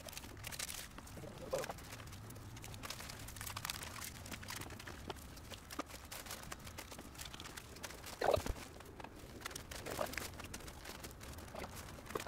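Foil insulation crinkles and rustles.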